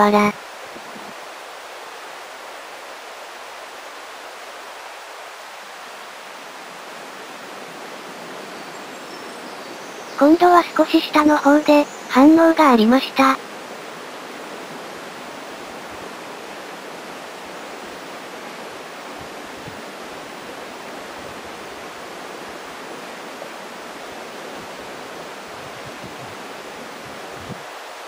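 A shallow stream trickles steadily over stones outdoors.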